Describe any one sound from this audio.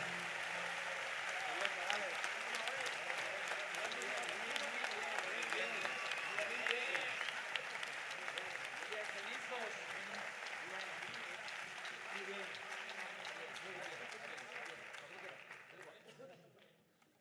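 An audience applauds and cheers loudly in a large hall.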